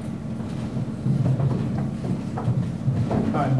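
A second man speaks into a microphone.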